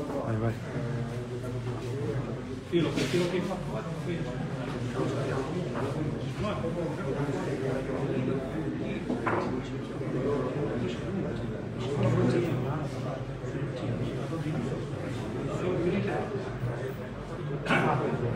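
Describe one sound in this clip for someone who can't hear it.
Several men talk at once nearby.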